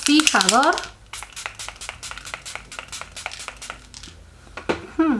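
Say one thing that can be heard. A spray bottle hisses in quick short bursts.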